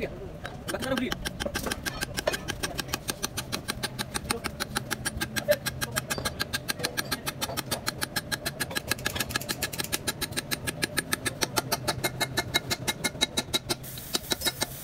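An impact wrench rattles in rapid bursts.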